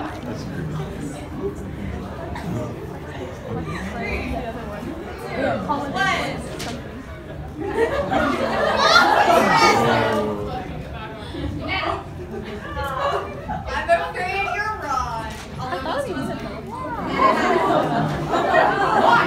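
A crowd of young people murmurs and chatters.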